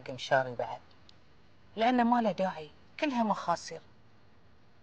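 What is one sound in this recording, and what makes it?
An older woman speaks with emotion, close by.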